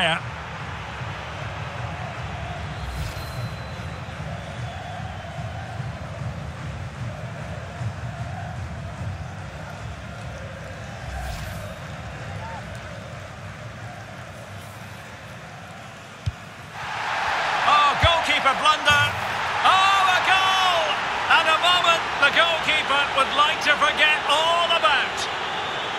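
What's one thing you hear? A large stadium crowd murmurs and roars steadily.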